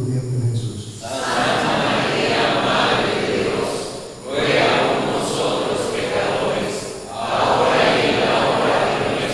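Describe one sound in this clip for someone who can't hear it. A group of men and women sing together.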